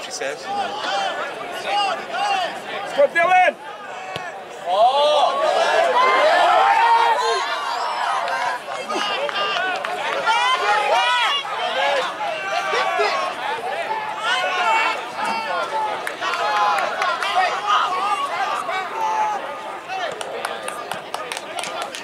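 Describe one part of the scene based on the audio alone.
A crowd of spectators chatters and cheers nearby, outdoors.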